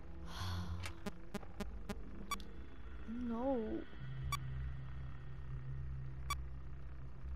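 Short electronic beeps sound.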